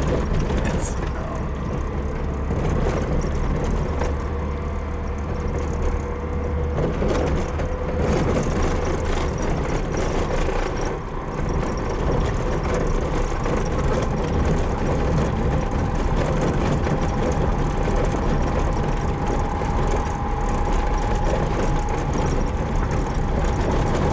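Tyres rumble and crunch over a dirt road.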